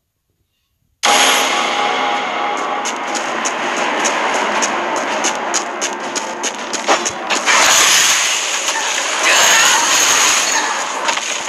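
Game music plays loudly.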